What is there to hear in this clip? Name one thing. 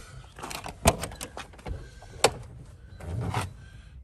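A car door latch clicks and the door swings open.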